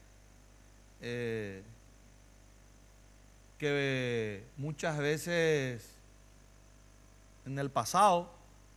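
A middle-aged man speaks with animation into a studio microphone, in short bursts with pauses.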